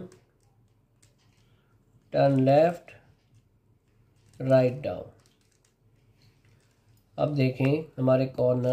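A plastic puzzle cube clicks softly as its layers are twisted.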